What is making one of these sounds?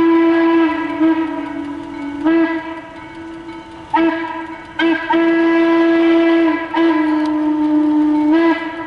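A steam locomotive whistle blows in long, repeated blasts from a distance outdoors.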